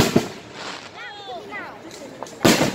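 Fireworks whistle as they rise.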